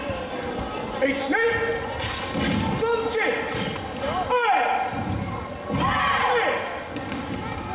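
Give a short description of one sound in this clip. A group of children shout together in short bursts, echoing in a large hall.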